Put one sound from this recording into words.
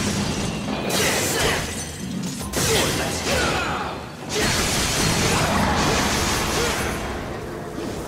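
Crystal shatters with loud crashes.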